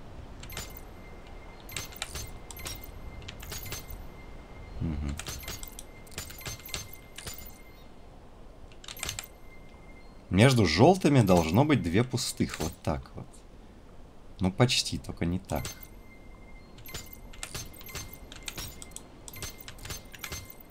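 Metal clicks and ticks as a dial mechanism is turned.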